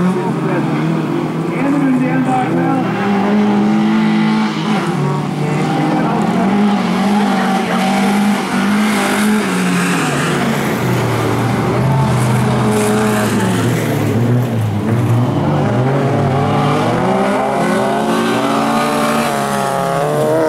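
Racing car engines roar and rev up and down.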